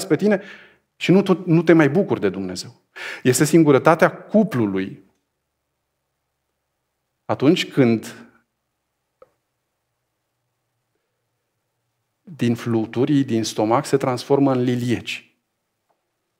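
A man speaks calmly and thoughtfully into a close microphone, with pauses.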